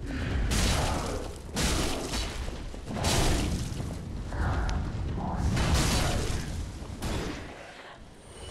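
Metal blades clash and strike.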